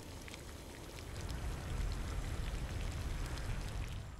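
Water pours from a hose and splashes softly onto grass.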